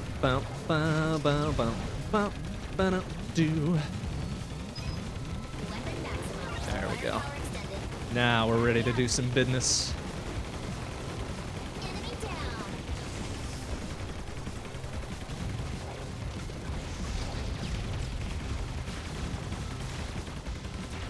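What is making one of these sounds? Rapid game gunfire and blasts crackle steadily.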